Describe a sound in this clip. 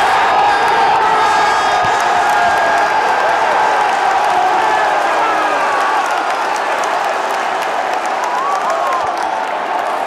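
A young man shouts and cheers with joy close by.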